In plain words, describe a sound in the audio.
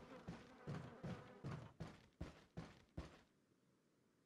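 Footsteps clump up wooden stairs.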